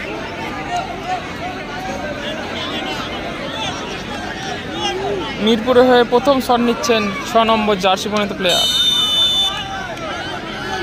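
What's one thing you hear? A large outdoor crowd chatters and murmurs steadily.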